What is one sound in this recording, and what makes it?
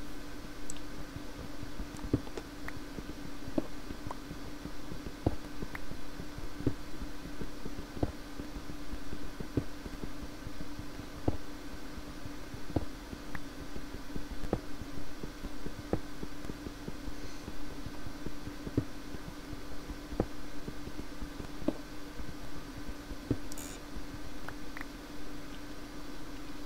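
A pickaxe chips at stone with regular dull knocks.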